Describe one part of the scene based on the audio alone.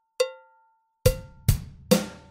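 Drums are struck with sticks.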